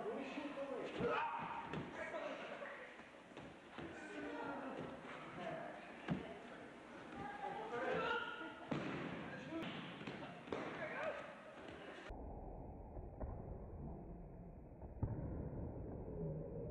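Bodies thud heavily onto a mat.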